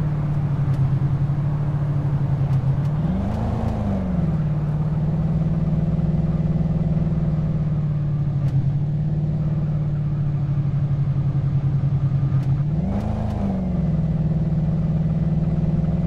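A car engine hums steadily and briefly revs up as the gears shift.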